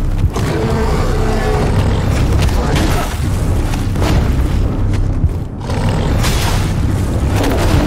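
Heavy blows and sword strikes crash and clang.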